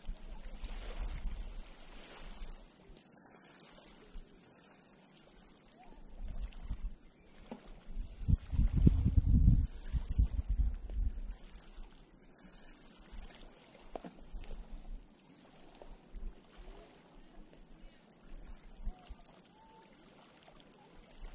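Small waves lap gently against pebbles at the shore.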